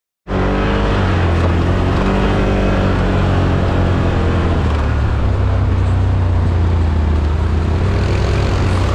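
An all-terrain vehicle engine rumbles steadily up close.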